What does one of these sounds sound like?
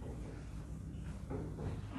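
A marker squeaks faintly as it writes on a whiteboard.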